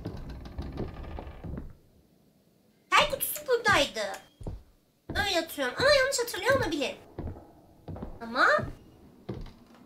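Footsteps thud on creaking wooden stairs.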